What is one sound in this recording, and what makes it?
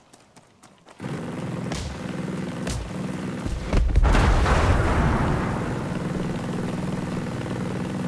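Footsteps crunch on gravel and rocks.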